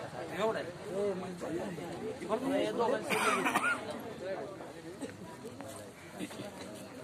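Several men talk loudly and with animation close by.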